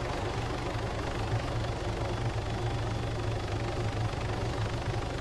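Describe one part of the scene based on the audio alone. A helicopter's rotor thumps rapidly and steadily.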